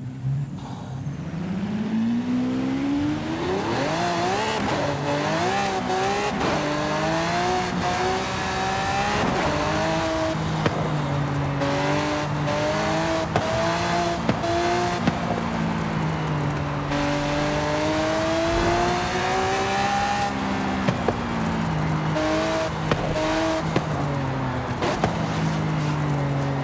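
Tyres hiss on a gravel road.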